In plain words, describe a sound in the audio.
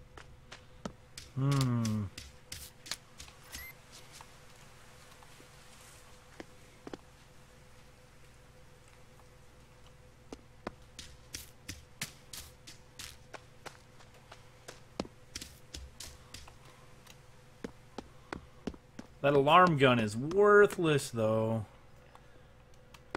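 Footsteps crunch steadily over ground.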